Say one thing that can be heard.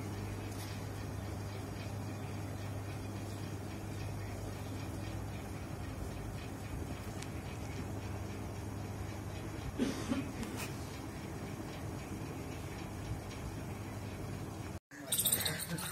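A ceiling fan hums steadily.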